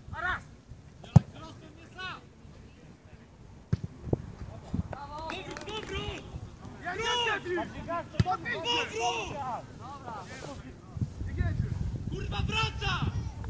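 Young men shout and call out to each other outdoors, some way off.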